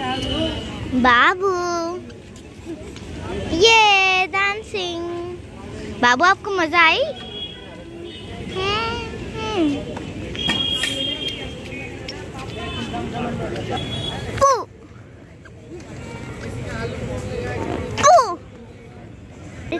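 A toddler babbles and squeals.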